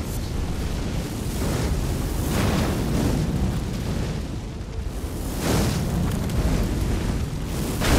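Fireballs whoosh and burst with a roar.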